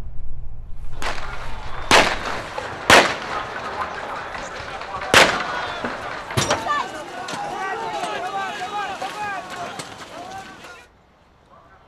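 A large crowd shouts and clamours outdoors.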